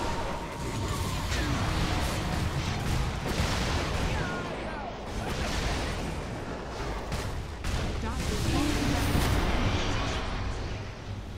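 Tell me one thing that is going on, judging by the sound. Game spells crackle and burst in a fast fight.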